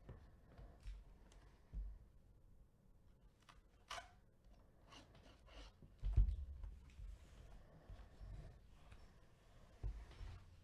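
Gloved hands rustle and tap against cardboard.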